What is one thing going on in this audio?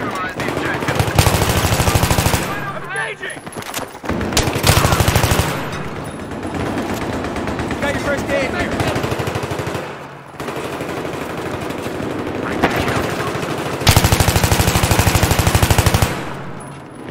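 Rapid automatic gunfire rattles in short, loud bursts.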